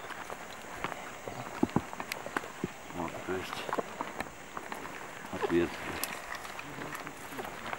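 Footsteps scuff and crunch on rock and gravel.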